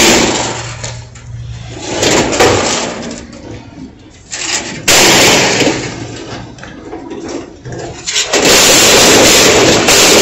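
Steel pegboard shelf panels clang and scrape as they are handled.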